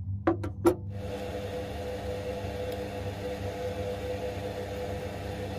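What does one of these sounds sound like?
A drill bit grinds steadily into spinning brass.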